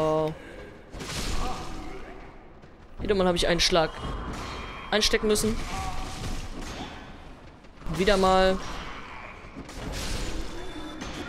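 A sword swings and strikes with heavy, slicing hits.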